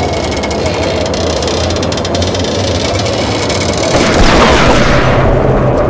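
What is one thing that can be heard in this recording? Footsteps clang on a metal walkway.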